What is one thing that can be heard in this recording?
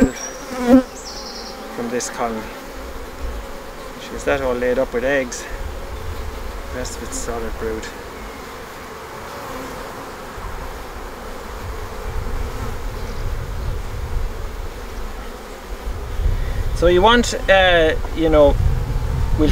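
Honey bees buzz around an open hive.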